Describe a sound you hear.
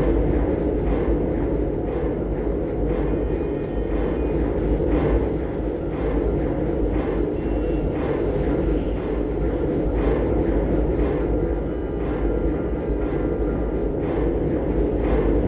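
An elevator motor hums steadily as the cage rides up.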